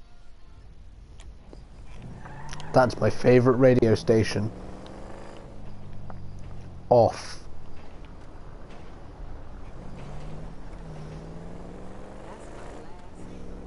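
A car engine hums and revs as a car drives along.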